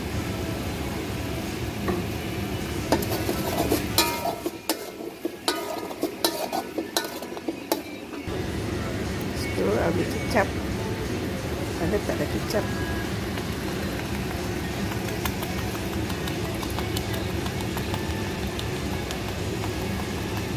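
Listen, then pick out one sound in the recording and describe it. Food sizzles and crackles in a hot pan.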